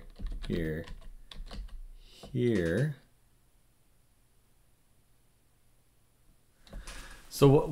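A man speaks calmly and thoughtfully into a close microphone.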